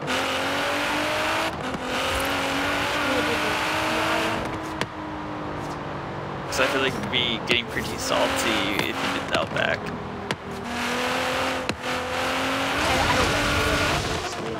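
A powerful car engine roars at high revs, rising and dropping as it shifts gears.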